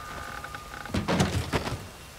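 A wooden crate lid creaks and thumps open.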